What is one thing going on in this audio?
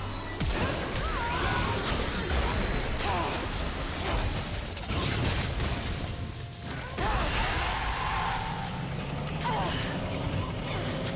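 Magic blasts and weapon hits crash and crackle in a busy fight.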